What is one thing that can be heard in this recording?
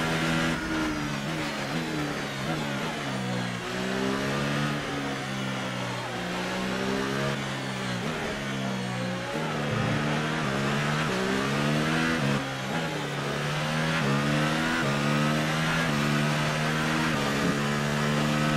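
A racing car engine revs high, rising and dropping in pitch with each gear change.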